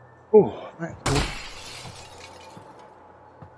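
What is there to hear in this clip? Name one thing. A window pane shatters with a loud crash.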